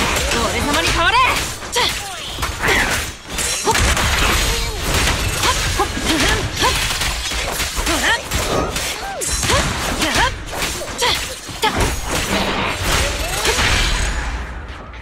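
Sword slashes and hits crash through a video game fight.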